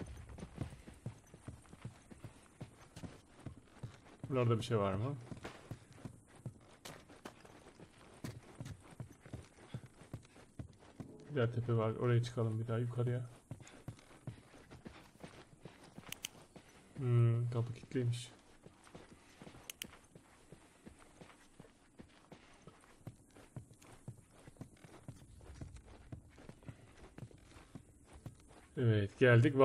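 Footsteps tread on creaky wooden floors.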